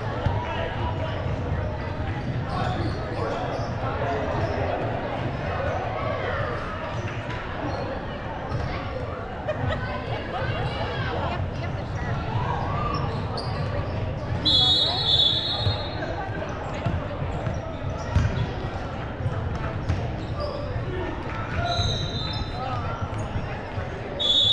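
A crowd of people chatter in a large echoing gym.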